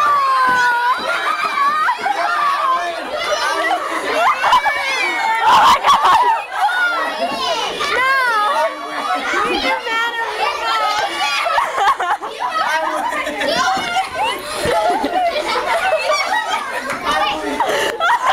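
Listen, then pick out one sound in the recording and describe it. A teenage girl laughs loudly.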